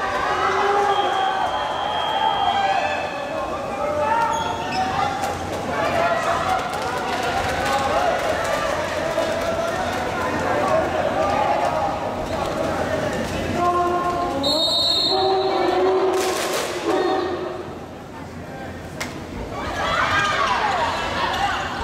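A crowd chants and cheers loudly in a large echoing hall.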